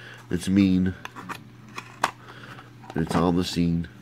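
A plastic blister pack crackles as it is handled.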